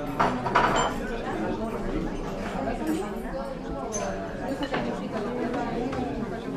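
Indistinct chatter of people murmurs in the background.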